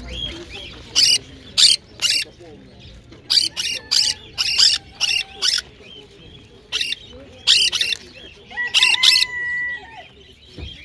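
Parrots screech loudly in short, harsh bursts.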